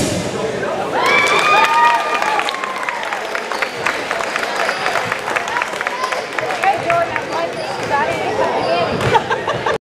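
Young girls shout a cheer together in a large echoing hall.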